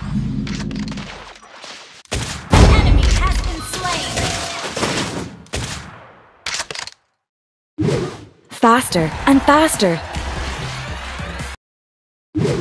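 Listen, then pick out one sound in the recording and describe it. Video game spell blasts and hits clash in a fast fight.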